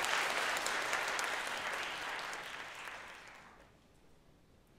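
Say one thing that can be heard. An audience applauds in a large echoing hall and the clapping fades away.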